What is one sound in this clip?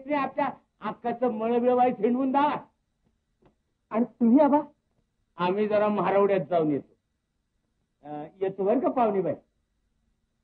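Men talk with animation, close by.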